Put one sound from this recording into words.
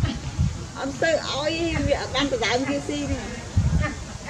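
A young monkey squeals and cries in high wavering calls.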